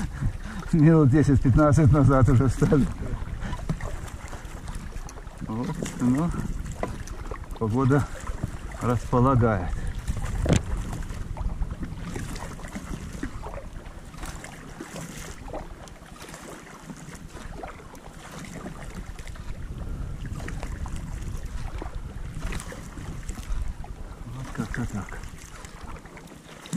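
A paddle dips and splashes in the water with each stroke.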